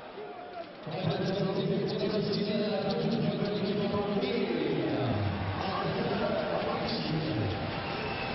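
A large crowd chants and sings loudly.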